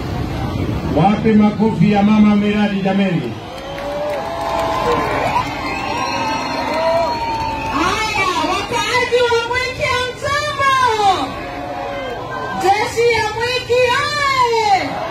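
A crowd of men and women sings loudly together.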